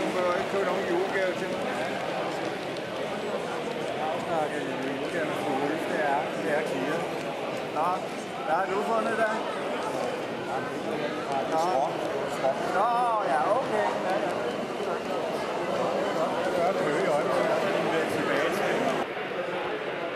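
A crowd of adults chatters in a large hall.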